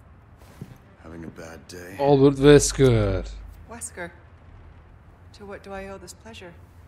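A young man speaks into a headset microphone.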